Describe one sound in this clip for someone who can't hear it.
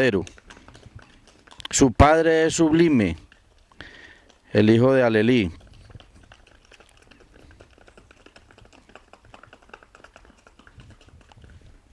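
Horse hooves clop on paving stones.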